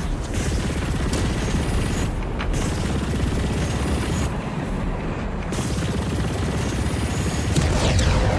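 Gunfire and explosions crackle and boom.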